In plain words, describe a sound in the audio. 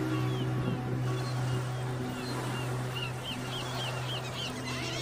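Small waves lap gently at the shore outdoors.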